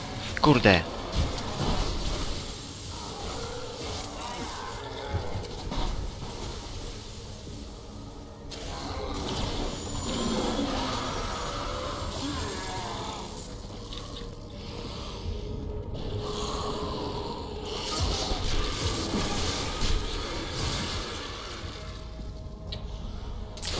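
Magic blasts crackle and boom in quick bursts.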